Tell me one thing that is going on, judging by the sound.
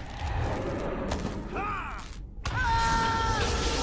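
Magic spells burst with a shimmering whoosh.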